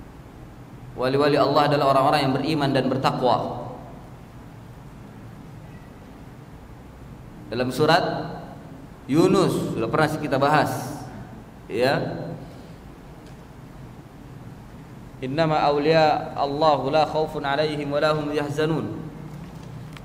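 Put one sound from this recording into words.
A middle-aged man speaks calmly into a microphone, in short phrases with long pauses.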